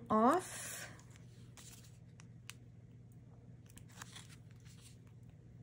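Paper rustles and crinkles as hands fold and handle it.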